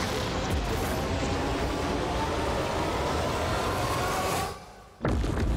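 A loud magical explosion booms and rumbles.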